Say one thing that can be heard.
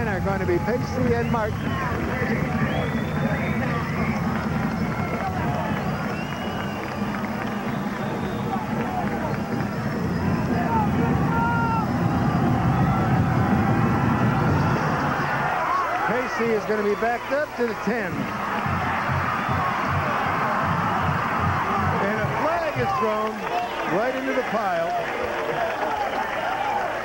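A large crowd cheers and roars outdoors.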